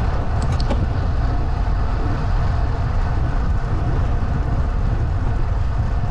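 Wind buffets loudly outdoors, rumbling low.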